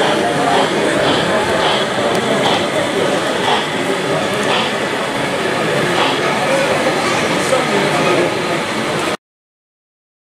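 A model locomotive clicks over rail joints as it rolls along the track.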